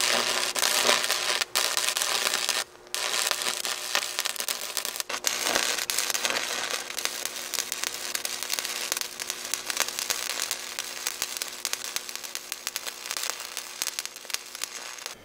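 A welding arc crackles and sizzles steadily.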